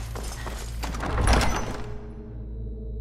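A heavy door swings open with a loud rumble.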